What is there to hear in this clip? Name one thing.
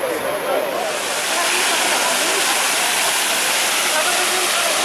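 A fountain splashes steadily.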